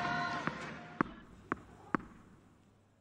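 A tennis ball is bounced on the court before a serve.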